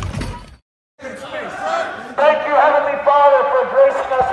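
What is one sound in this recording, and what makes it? A man speaks loudly through a megaphone in an echoing hall.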